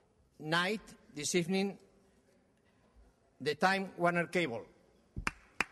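An elderly man speaks loudly through a microphone in a large room.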